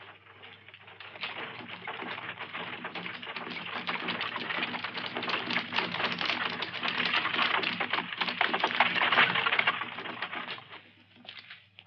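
Stagecoach wheels rumble.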